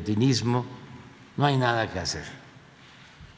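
An elderly man speaks with emphasis into a microphone.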